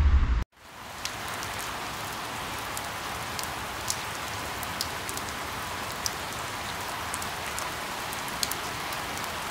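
Raindrops tap sharply on leaves now and then.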